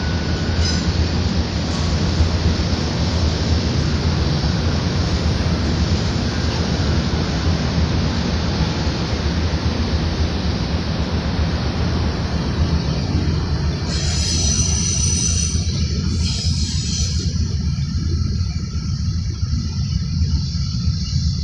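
Wind blows steadily across an open outdoor space, buffeting loudly.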